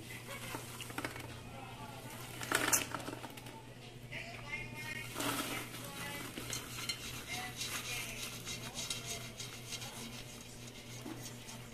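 Popcorn pours and rustles into a metal bowl.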